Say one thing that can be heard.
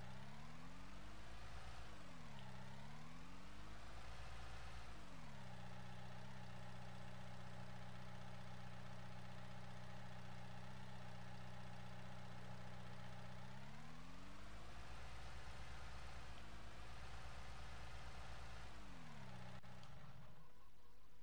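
A telehandler's engine hums and its hydraulics whine up and down in pitch.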